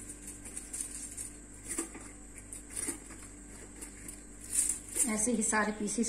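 Aluminium foil crinkles and rustles under hands.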